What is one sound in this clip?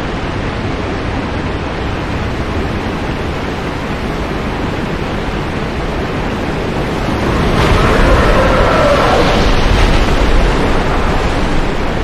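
Water sloshes and churns steadily.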